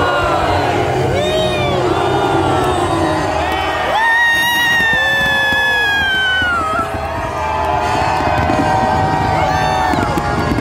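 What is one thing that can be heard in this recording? Loud music with a singing voice plays over large loudspeakers outdoors.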